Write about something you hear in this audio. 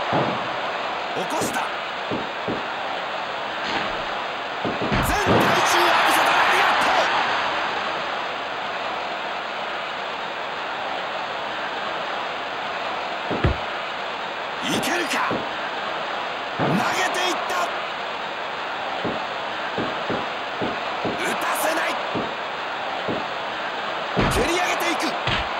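Heavy thuds sound as wrestlers strike and grapple.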